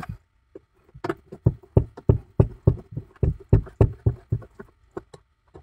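A plastic panel rattles and knocks as a hand pulls it.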